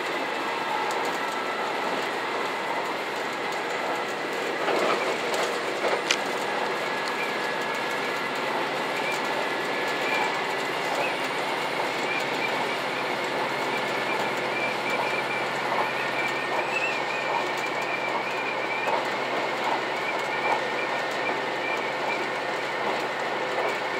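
A diesel express train runs along the rails, heard from inside the cab.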